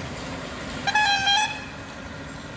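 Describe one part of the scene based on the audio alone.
A vehicle horn honks briefly.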